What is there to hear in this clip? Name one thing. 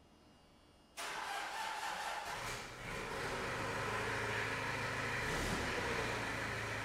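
A skid steer loader's engine starts and idles with a steady rumble.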